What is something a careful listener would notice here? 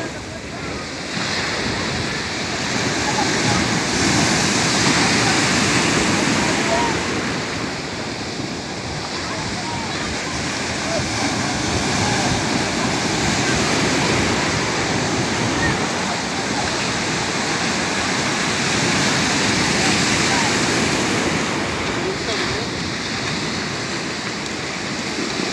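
Surf foams and hisses as it washes in.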